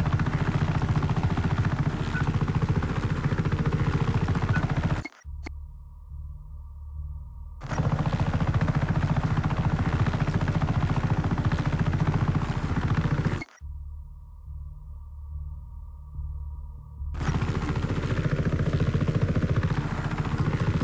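A helicopter's rotor chops loudly and steadily, growing muffled at times.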